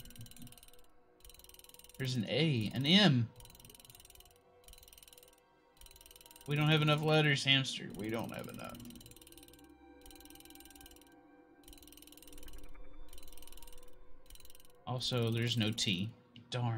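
Metal letter dials click as they turn.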